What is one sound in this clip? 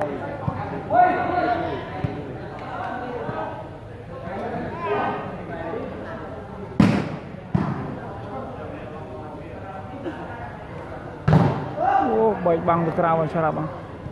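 A crowd of men shout and call out in a large echoing hall.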